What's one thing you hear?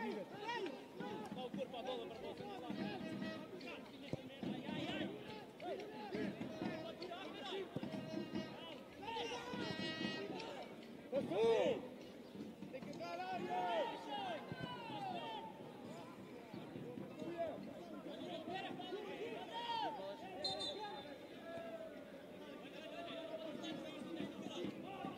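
A crowd chants and cheers from the stands outdoors.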